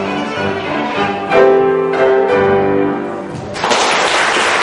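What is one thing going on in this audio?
A violin and a piano play the last notes of a piece.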